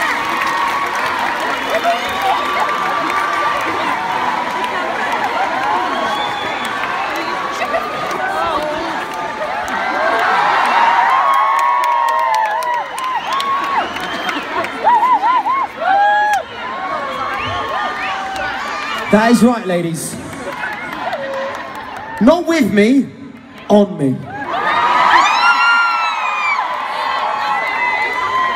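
A crowd sings along and cheers nearby.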